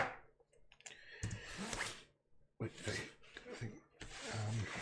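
A hand rubs and slides across paper.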